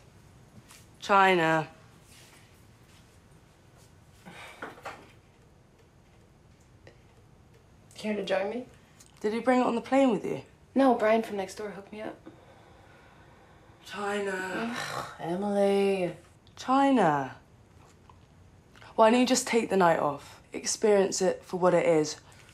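A young woman speaks close by in a conversational tone.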